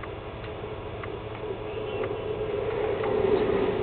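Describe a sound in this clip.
Water pours down in a steady rush.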